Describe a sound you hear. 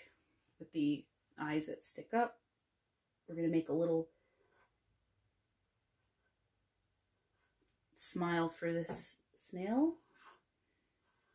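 A young woman speaks calmly close by, in short phrases with pauses.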